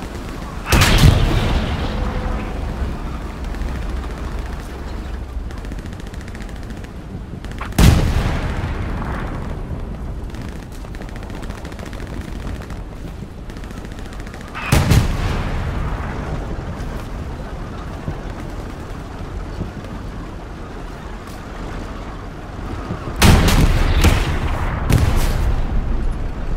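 A rifle fires loud, echoing shots.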